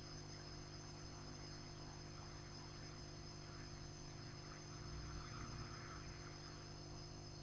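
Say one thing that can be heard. Solder sizzles faintly under a hot iron.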